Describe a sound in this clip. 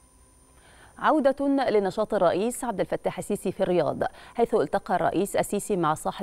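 A young woman speaks calmly and clearly into a microphone, like a news presenter.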